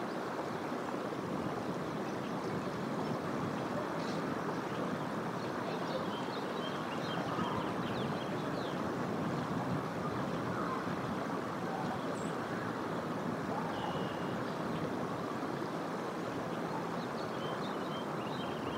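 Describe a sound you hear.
A creek flows and babbles steadily nearby.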